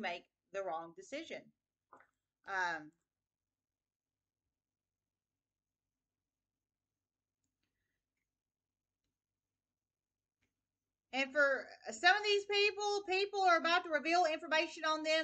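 A woman speaks calmly, close up.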